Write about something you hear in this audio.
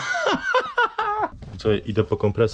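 A young man laughs.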